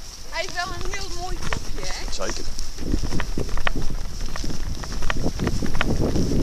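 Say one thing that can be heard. A dog runs across grass with quick, thudding paw steps.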